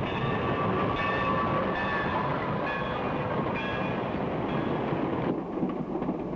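A steam train whistle blows loudly in long chords.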